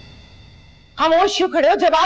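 A middle-aged woman speaks up anxiously, close by.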